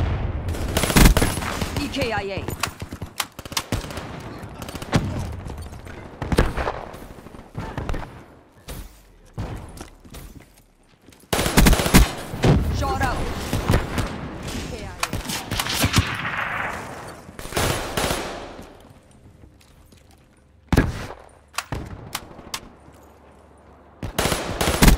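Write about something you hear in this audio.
Rapid bursts of gunfire crack and echo.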